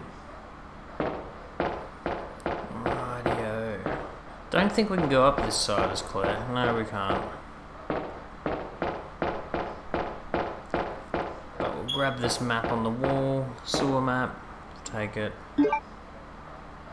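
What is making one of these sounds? Footsteps run on metal grating.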